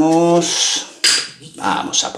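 A metal shaker tin is pressed onto another with a clank.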